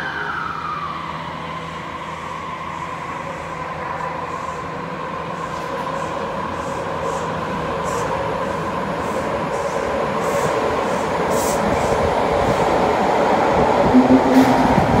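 A subway train pulls away and picks up speed, its motor whining steadily louder.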